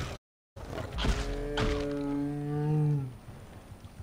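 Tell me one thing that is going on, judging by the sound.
A lion snarls and growls up close.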